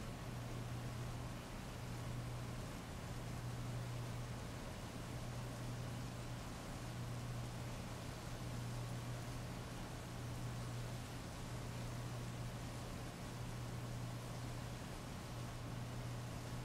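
Heavy rain pours steadily and splashes on wet pavement.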